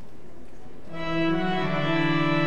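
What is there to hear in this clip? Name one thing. A pipe organ plays loud, sustained chords in a large echoing hall.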